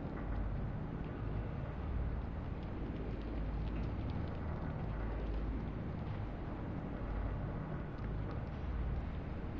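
A low electronic hum drones steadily.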